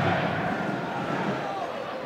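A man shouts from the sideline.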